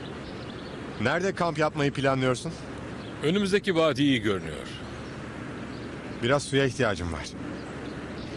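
A man speaks.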